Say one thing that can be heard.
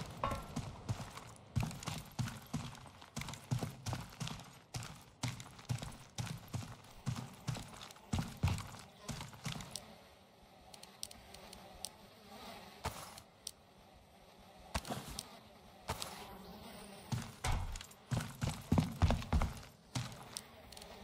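Heavy footsteps thud steadily on a hard floor.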